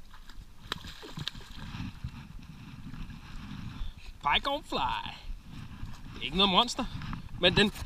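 A hooked fish splashes at the water surface.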